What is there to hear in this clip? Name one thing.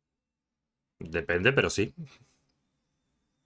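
A man speaks briefly and animatedly into a close microphone.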